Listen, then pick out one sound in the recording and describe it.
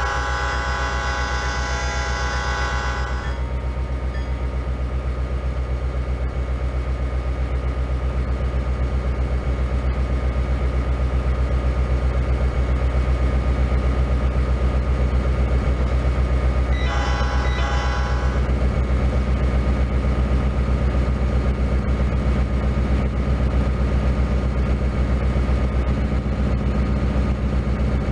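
Diesel locomotives rumble as they approach and pass, pulling a freight train.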